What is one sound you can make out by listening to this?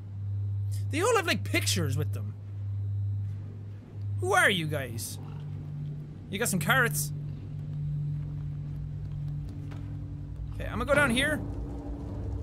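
A young man makes short, lively exclamations close to a microphone.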